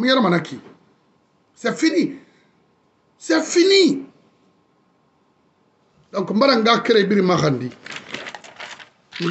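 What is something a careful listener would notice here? A man speaks close to a phone microphone, in short earnest phrases with pauses.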